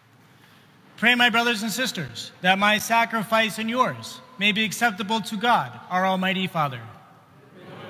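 A man chants a prayer through a microphone, echoing in a large hall.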